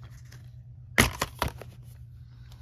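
A plastic case snaps open with a click.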